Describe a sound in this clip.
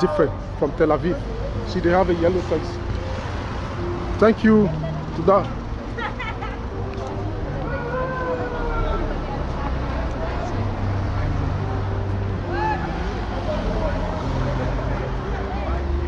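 A crowd of men and women chatter nearby in the street.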